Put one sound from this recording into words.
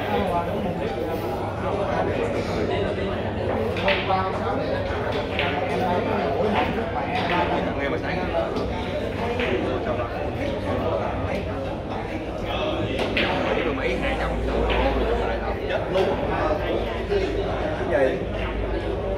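A cue tip strikes a ball with a sharp tap.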